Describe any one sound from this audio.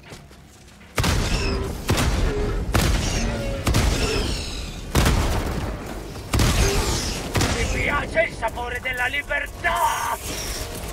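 Explosions boom in loud, sudden bursts.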